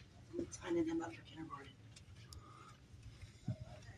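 A woman talks quietly on a phone some distance away.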